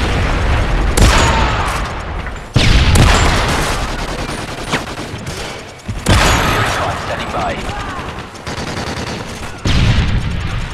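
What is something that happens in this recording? A rifle fires loud single shots that echo.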